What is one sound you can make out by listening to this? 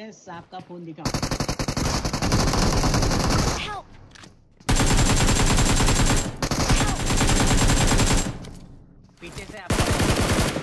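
Rapid gunfire rattles loudly in long bursts.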